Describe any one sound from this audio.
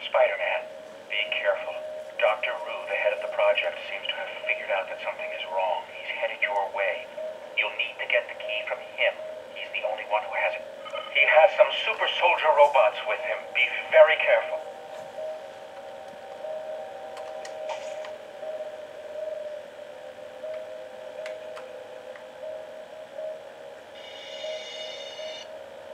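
Electronic game music plays through a small speaker.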